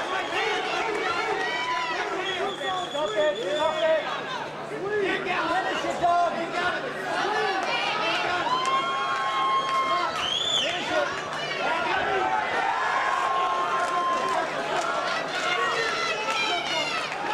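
A crowd shouts and cheers loudly in a large hall.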